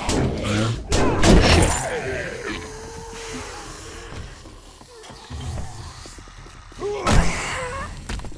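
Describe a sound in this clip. A spiked club thuds into flesh.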